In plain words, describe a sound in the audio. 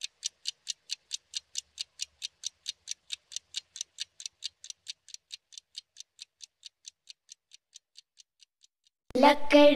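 A clock ticks steadily, slowing and fading away.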